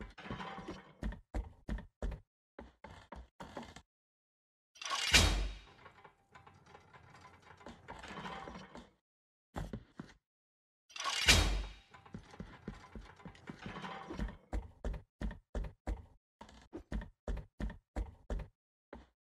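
Hands and feet knock on a wooden ladder while climbing.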